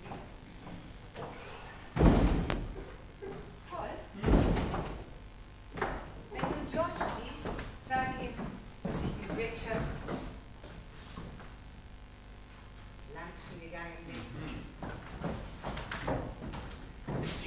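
A woman speaks with animation, heard from a distance in a hall.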